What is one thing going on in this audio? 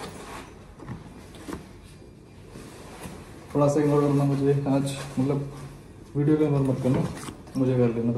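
Bag straps rustle and clack as a young man puts on a backpack.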